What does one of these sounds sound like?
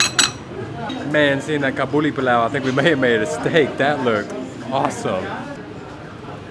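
A man talks cheerfully and close by.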